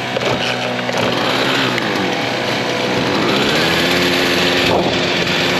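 A small two-stroke engine revs up and down.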